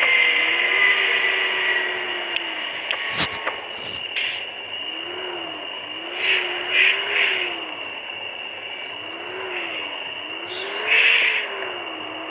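A bus engine hums steadily, its pitch rising and falling gently.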